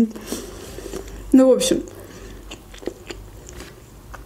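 A young woman chews food with soft mouth sounds.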